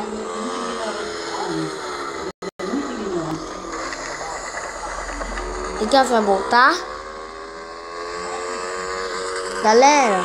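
A motorbike engine hums steadily and changes pitch as it revs.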